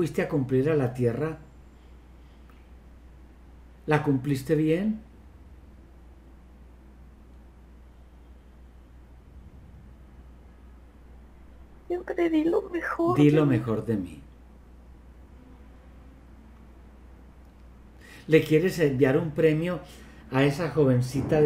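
An elderly man speaks calmly through an online call, in short bursts with pauses.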